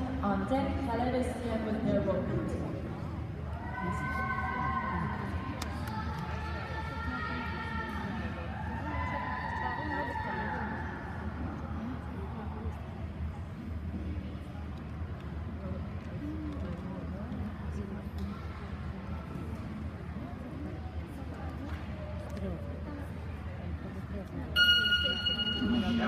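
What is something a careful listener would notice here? People murmur and chat in a large echoing hall.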